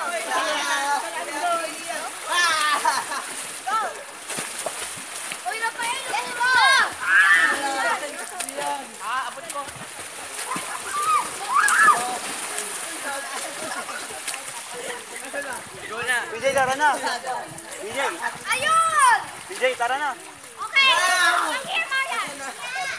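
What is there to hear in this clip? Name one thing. Water splashes as people play in a pool.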